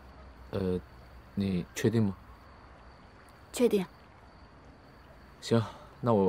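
A young man speaks calmly and briefly, close by.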